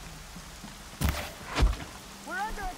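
An arrow strikes with a sharp impact.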